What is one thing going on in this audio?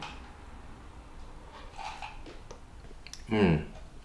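A man slurps soup from a spoon.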